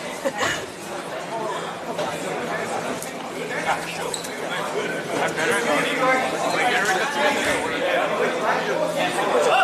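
Young players and spectators call out and chatter in a large echoing gym.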